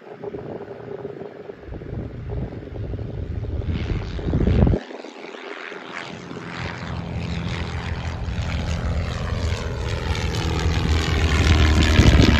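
A small propeller plane engine drones overhead, growing louder as it approaches.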